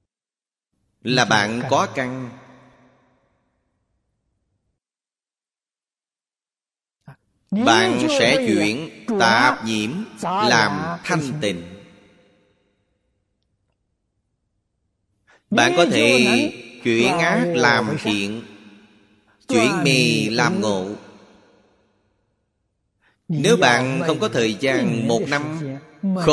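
An elderly man speaks calmly into a microphone close by, with pauses between phrases.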